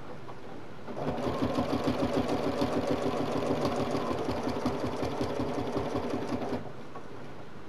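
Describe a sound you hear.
A sewing machine stitches rapidly with a steady whirring hum.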